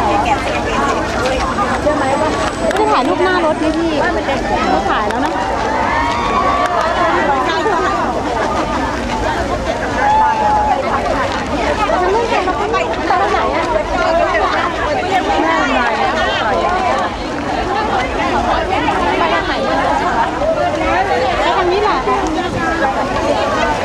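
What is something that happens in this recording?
A large crowd chatters and cheers loudly all around.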